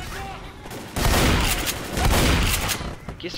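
A shotgun fires loudly, several times.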